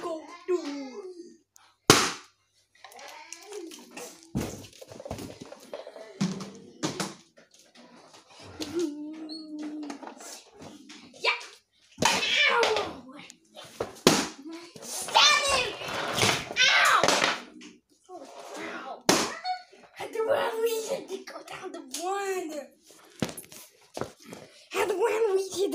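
Plastic toy cars clatter and knock against a wooden floor.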